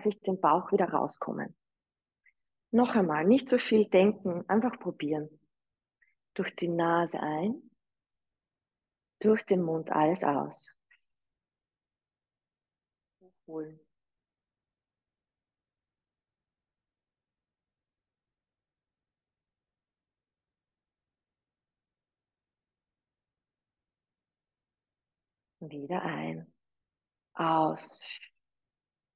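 A young woman speaks calmly into a microphone, giving instructions in short bursts with pauses.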